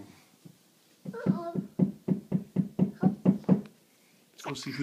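A little girl makes a rhythmic sing-song chant close by.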